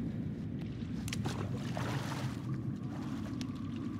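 Water splashes loudly as a man falls into it.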